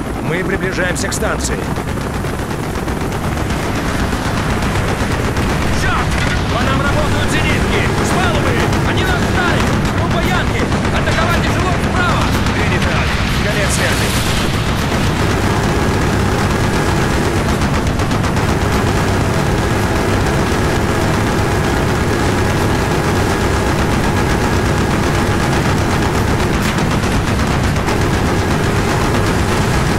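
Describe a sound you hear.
A helicopter rotor thumps in flight.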